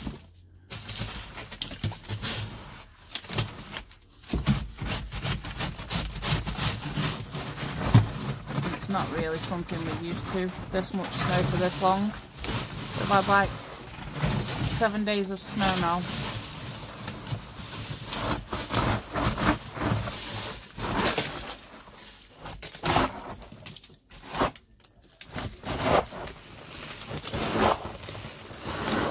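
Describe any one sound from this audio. Hail drums hard and fast on a thin plastic roof overhead.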